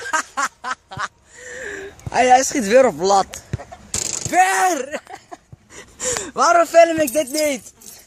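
A teenage boy laughs loudly close to the microphone.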